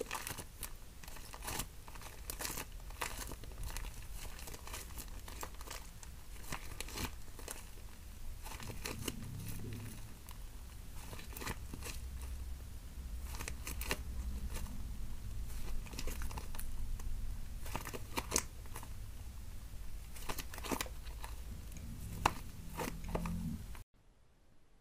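Sticky slime squelches and crackles as hands squeeze and stretch it.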